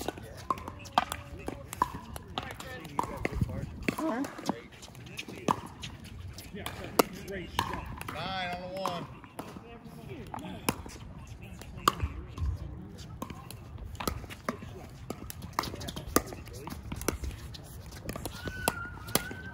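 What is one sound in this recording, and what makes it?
Paddles hit a plastic ball with sharp pops.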